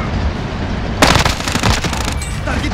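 Gunfire rings out in a short, loud burst.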